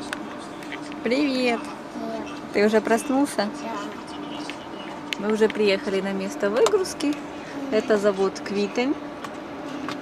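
A young child talks playfully nearby.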